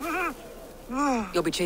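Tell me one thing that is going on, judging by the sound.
A man howls in pain nearby.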